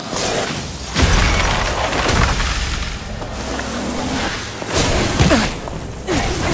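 Heavy whooshing impacts boom loudly.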